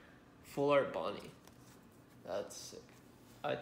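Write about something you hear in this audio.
Trading cards slide and rustle softly between hands.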